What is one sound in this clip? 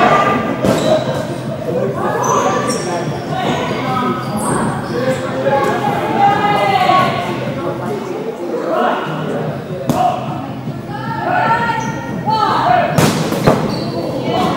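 A ball thumps on a hard floor and against hands.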